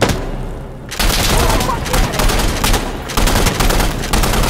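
An explosion booms and crackles with fire.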